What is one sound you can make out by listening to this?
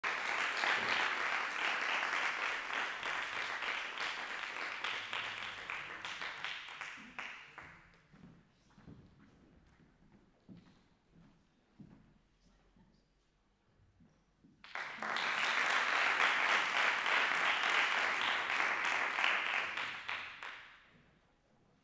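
An audience applauds loudly in a hall, fading away and then swelling again.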